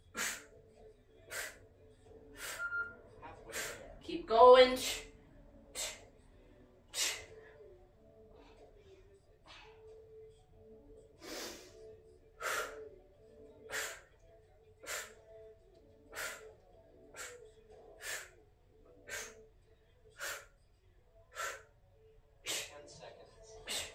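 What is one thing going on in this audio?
A woman breathes out sharply in a steady, even rhythm, close by.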